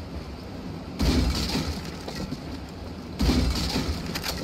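A wooden crate smashes apart with a loud crack and splintering.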